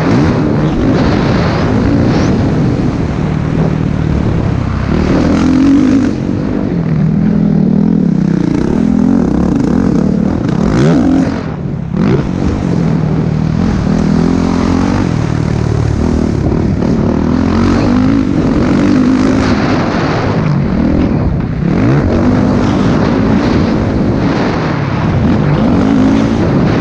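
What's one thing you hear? A dirt bike engine roars up close, revving and changing pitch as gears shift.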